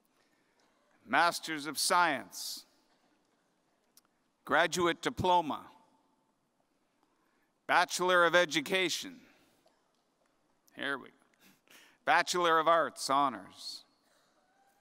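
A man speaks calmly through a microphone in an echoing hall, pausing between phrases.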